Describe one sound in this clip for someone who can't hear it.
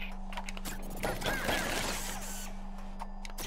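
Bright, sparkling game chimes ring out in a quick burst.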